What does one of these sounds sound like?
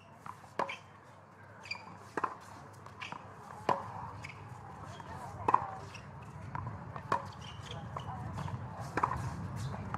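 A tennis ball bounces on a hard court at a slow, steady pace.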